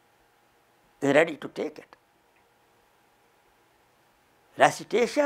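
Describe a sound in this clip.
An elderly man speaks with animation into a close microphone, in short bursts with pauses.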